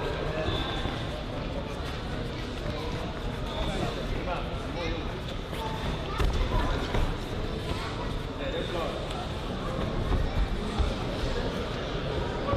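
Gloved punches thud now and then.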